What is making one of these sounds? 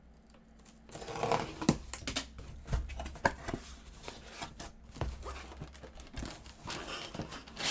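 Cardboard tears as a box is opened.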